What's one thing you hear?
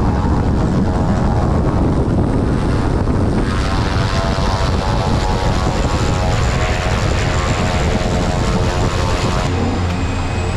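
A small propeller plane's engine roars close by, outdoors.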